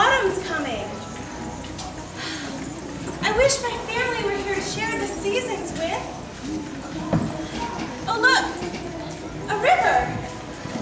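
Metal coins on a dancer's hip scarf jingle softly.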